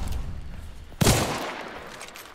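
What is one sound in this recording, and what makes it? A revolver fires a loud shot.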